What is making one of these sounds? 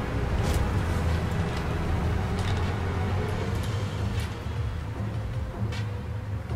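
A vehicle engine rumbles low and steady nearby.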